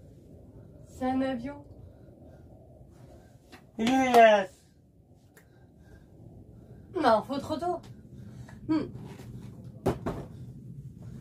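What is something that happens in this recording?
A young woman speaks and laughs close to a microphone.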